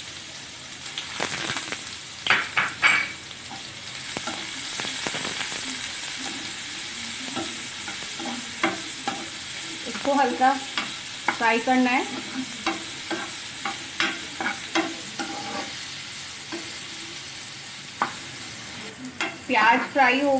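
A spoon scrapes and knocks against a frying pan.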